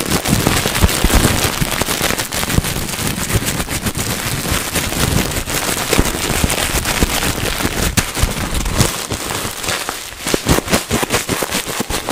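Bubbles in plastic wrap pop with sharp snaps.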